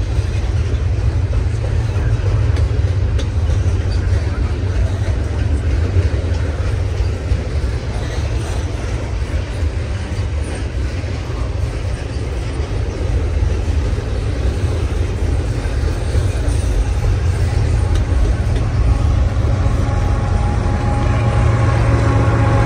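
A freight train rumbles and clatters steadily past, close by.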